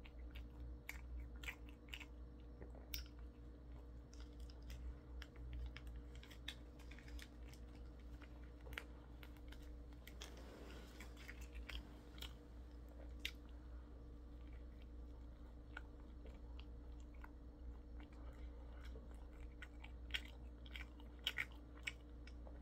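A young man chews food with wet, smacking sounds close by.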